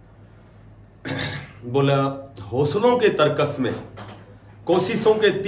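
A middle-aged man speaks with animation into a clip-on microphone, close by.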